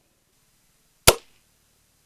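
A metal lever snaps shut with a sharp click.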